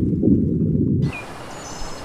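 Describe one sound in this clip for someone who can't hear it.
Water rumbles and churns underwater.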